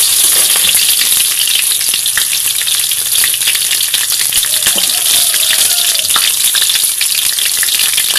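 A metal spoon scrapes and clinks against a wok.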